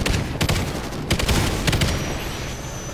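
A heavy machine gun fires loud bursts.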